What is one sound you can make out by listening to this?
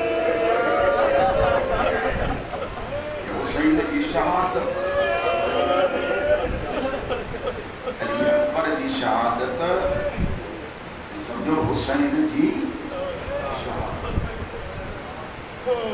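A crowd of men beat their chests with dull thumps.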